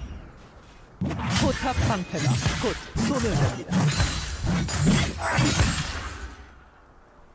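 Magic blasts and sword strikes clash in a fast game battle.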